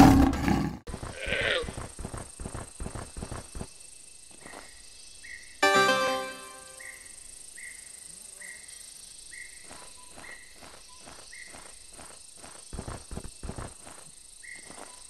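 Paws pad steadily on the ground.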